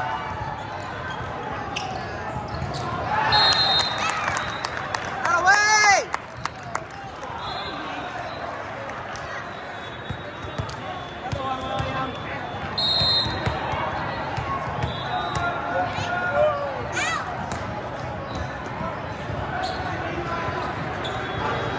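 A volleyball is hit with sharp smacks.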